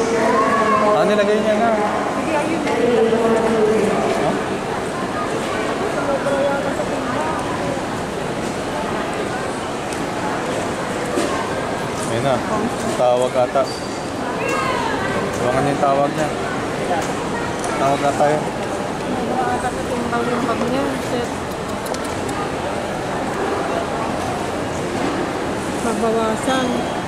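A crowd of adults talks.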